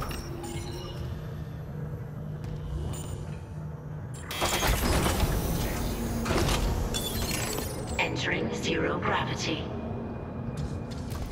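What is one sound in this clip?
Heavy footsteps clank on a metal floor.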